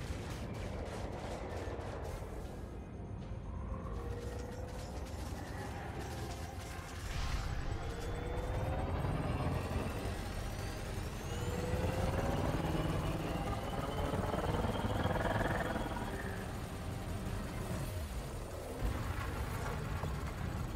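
A spaceship engine hums with a low steady rumble.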